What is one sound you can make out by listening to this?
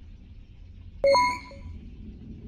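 An electronic keypad gives a short loud beep.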